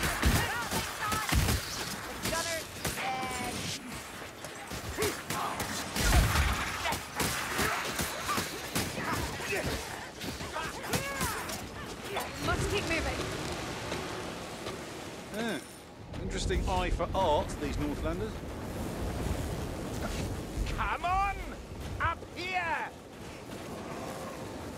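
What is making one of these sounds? Blades strike and slash in quick, heavy hits.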